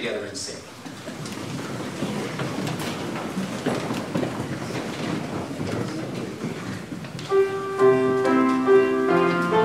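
A crowd of people rises from seats with shuffling and rustling.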